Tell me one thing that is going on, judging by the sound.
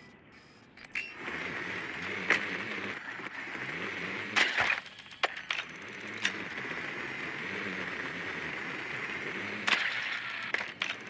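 A small motor whirs steadily as a toy drone rolls across a floor.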